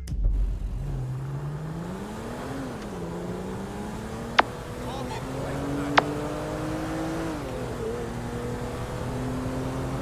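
A car engine accelerates through gear shifts.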